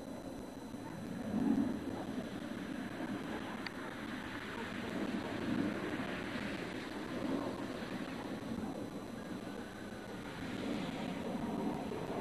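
The turbofan engines of an A-10 attack jet roar and whine as it passes overhead.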